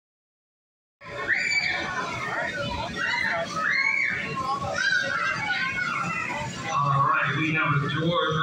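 Young children chatter and shout excitedly nearby.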